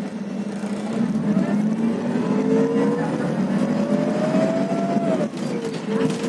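A bus engine whines and rises in pitch as the bus pulls away.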